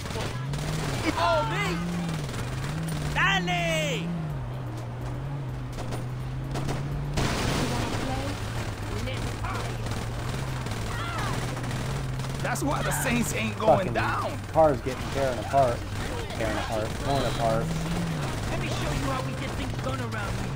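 Tyres screech as a car skids around corners.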